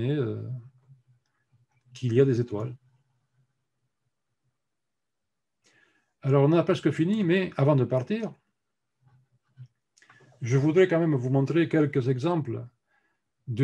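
An older man speaks calmly over an online call, with pauses between phrases.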